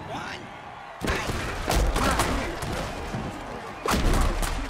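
Football players crash together in heavy tackles with loud thuds.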